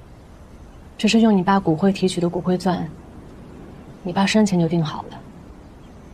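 A young woman speaks calmly and quietly.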